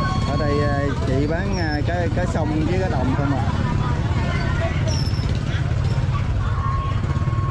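Scissors snip through fish.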